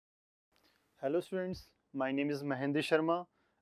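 A young man speaks calmly and clearly into a microphone, close by.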